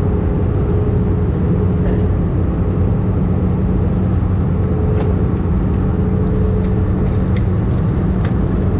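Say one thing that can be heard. Jet engines roar with a steady, deep drone inside an aircraft cabin in flight.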